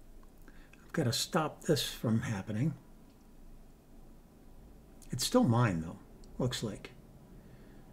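An older man speaks calmly and close to a microphone, in short bursts.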